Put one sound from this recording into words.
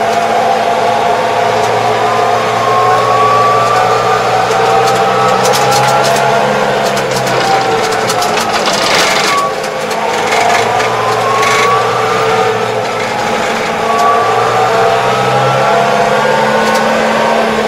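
A tractor engine hums steadily from close by.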